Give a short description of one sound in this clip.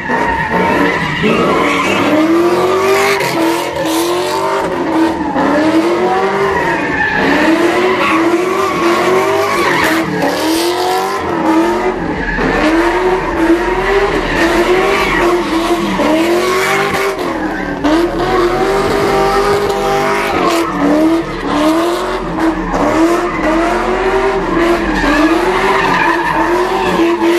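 A car engine revs hard, rising and falling over and over.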